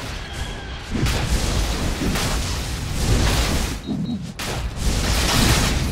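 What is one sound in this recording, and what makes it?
Swords clash and strike in a game battle.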